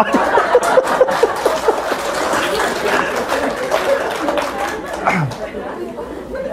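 A man laughs.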